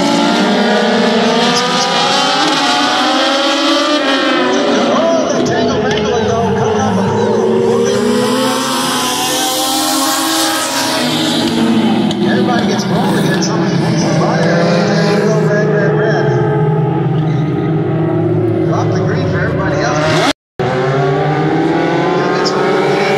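Small race car engines roar and whine loudly, rising and falling in pitch as the cars pass.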